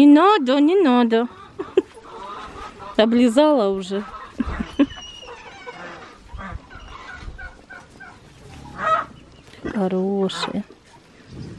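A cow sniffs and snuffles close by.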